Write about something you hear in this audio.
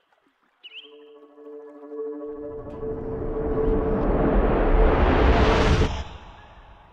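A glowing orb hums with a steady, ringing drone.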